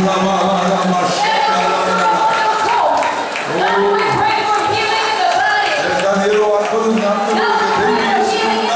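A large crowd of men and women sings and cries out loudly in a large echoing hall.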